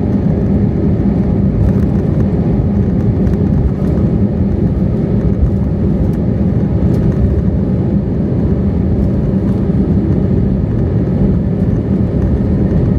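A jet engine roars steadily from inside an airliner cabin.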